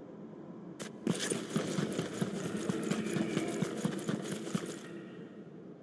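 Quick footsteps patter across a hard floor.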